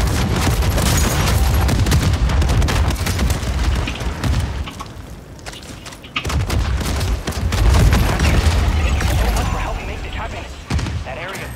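Gunfire and explosions from a video game boom loudly.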